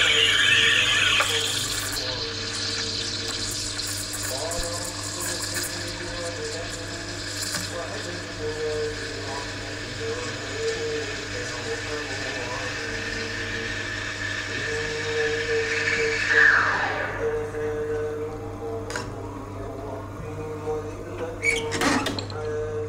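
An espresso machine hums steadily.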